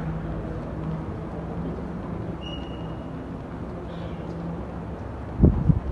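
Men murmur and talk quietly nearby.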